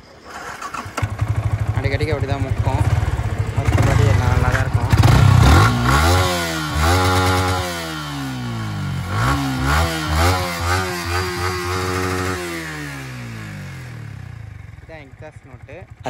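A motorcycle engine starts, then revs up and down repeatedly before settling and dying away.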